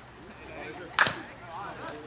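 A bat hits a slowpitch softball with a sharp crack.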